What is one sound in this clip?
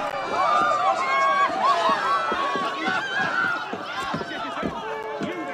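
Footsteps run quickly over stone and wooden planks.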